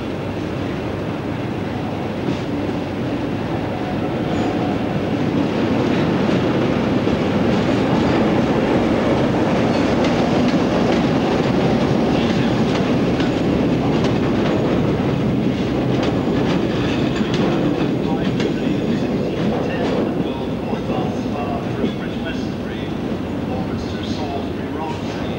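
A diesel locomotive engine rumbles loudly as it passes close by.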